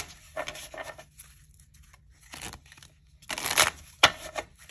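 Playing cards riffle and flutter as a deck is shuffled by hand.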